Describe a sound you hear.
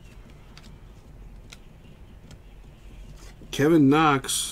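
Trading cards softly rustle and slide against each other in a person's hands.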